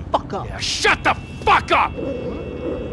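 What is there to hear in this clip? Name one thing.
A man shouts angrily up close.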